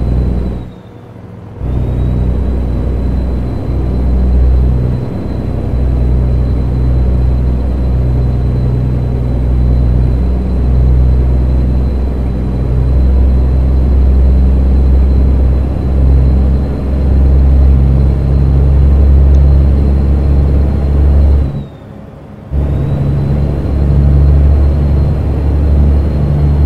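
A truck's diesel engine rumbles loud and low, dropping away briefly twice as gears change.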